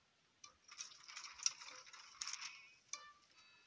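A toy-like lawn mower buzzes across grass.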